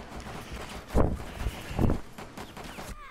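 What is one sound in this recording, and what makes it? Gunshots bang sharply in quick succession.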